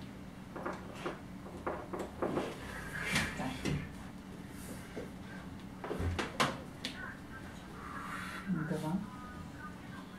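Wood knocks and creaks.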